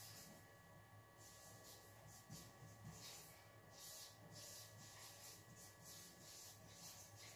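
A marker squeaks and scratches across a whiteboard in short strokes.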